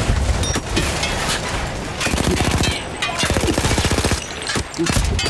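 A rifle fires in sharp, rapid cracks.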